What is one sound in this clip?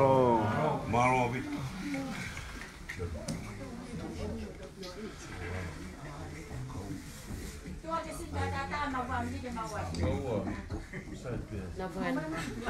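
Several women talk and chatter nearby indoors.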